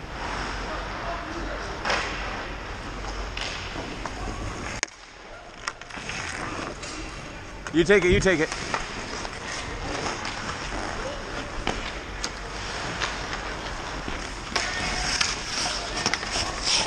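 Ice skates scrape and hiss across the ice in an echoing rink.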